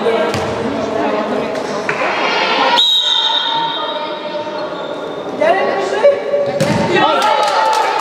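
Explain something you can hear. Young girls shout and call out in a large echoing hall.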